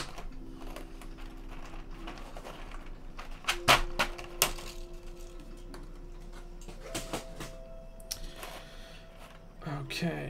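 A keyboard case knocks and rattles as it is handled.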